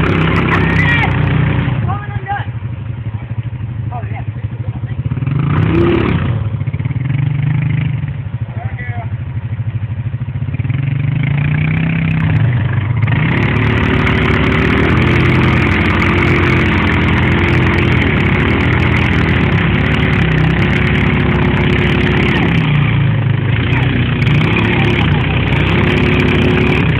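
An all-terrain vehicle engine idles and revs in thick mud.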